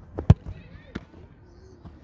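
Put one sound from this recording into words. A football smacks into a goal net.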